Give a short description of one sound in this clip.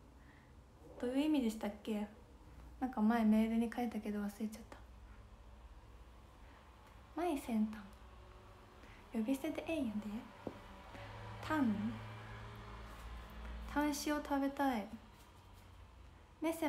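A young woman talks close to the microphone in a soft, animated voice.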